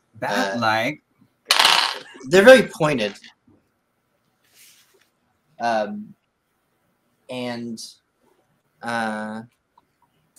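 A man speaks expressively through a headset microphone on an online call, in short bursts.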